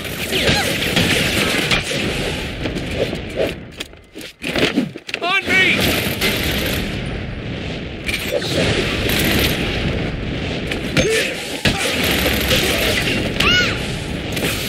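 Punches and kicks thud in a brawl.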